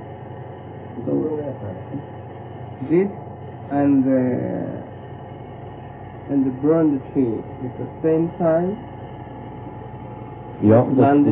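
A man talks calmly in short bursts.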